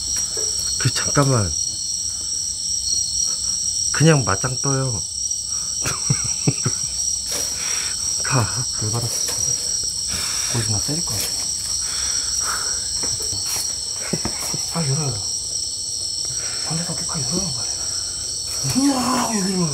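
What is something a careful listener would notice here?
A young man speaks quietly and close by.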